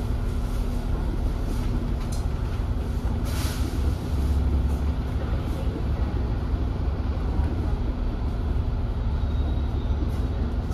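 Traffic hisses past on a wet road.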